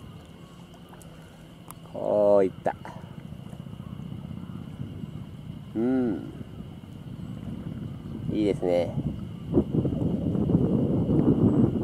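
Small waves lap gently at a rocky shore.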